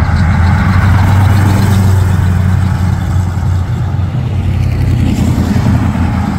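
A classic Chevrolet pickup's engine rumbles as it pulls away.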